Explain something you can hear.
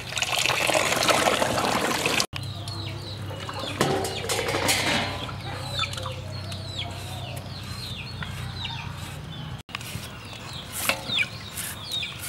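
Hands splash and rub carrots in water.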